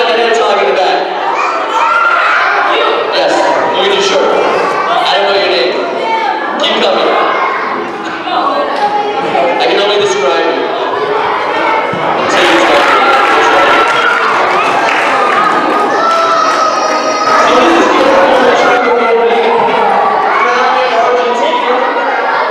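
Many children chatter and shout in a large echoing hall.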